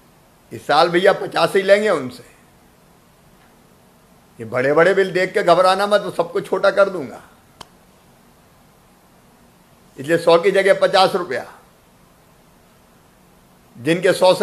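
A middle-aged man speaks calmly and firmly into a close microphone, in short bursts with pauses.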